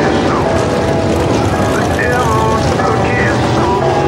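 Race cars crash and debris clatters onto a dirt track.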